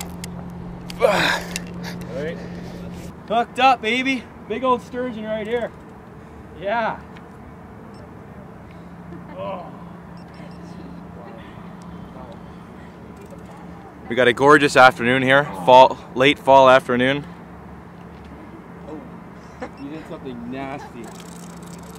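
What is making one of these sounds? A young man talks excitedly close by.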